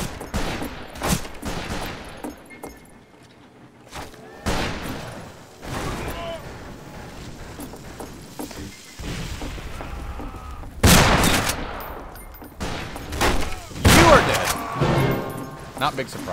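Gunshots boom in quick bursts.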